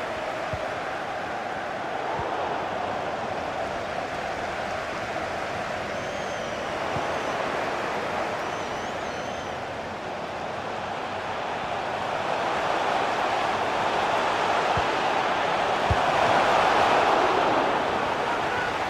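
A large stadium crowd roars steadily, swelling louder toward the end.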